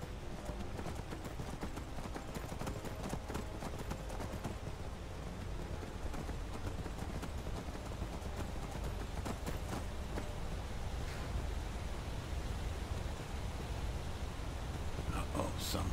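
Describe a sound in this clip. Horse hooves clop steadily on stone.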